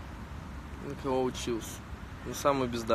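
A young man speaks casually and close to a phone's microphone.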